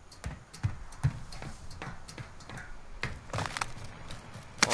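Footsteps thud steadily on a hard surface.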